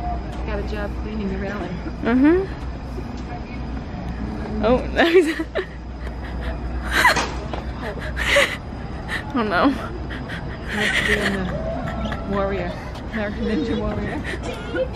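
A young boy squeals and shouts excitedly nearby.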